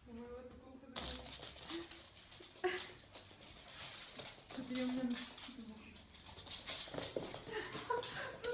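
Dogs' paws scamper on a hard floor.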